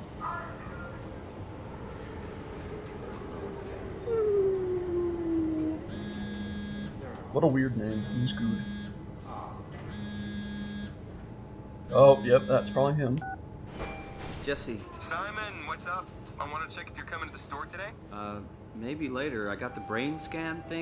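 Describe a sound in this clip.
A subway train rumbles steadily.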